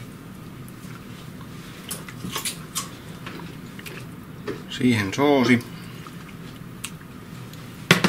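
A spoon scrapes and taps against a ceramic bowl.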